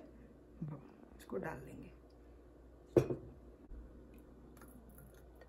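Water pours into a glass.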